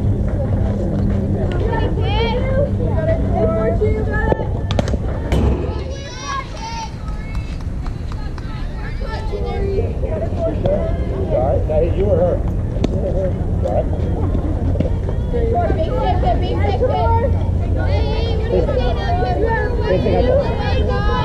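Young women call out and cheer across an open field.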